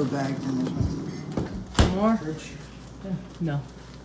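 A freezer door thuds shut.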